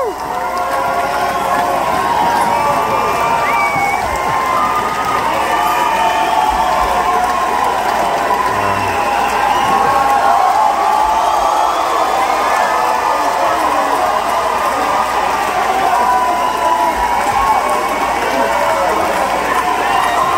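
A band plays loud live music in a large echoing hall.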